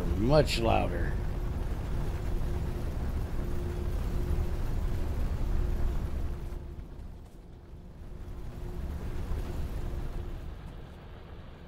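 Factory machines hum and whir steadily.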